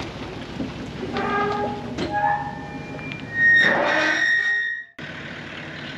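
A metal gate creaks and clanks.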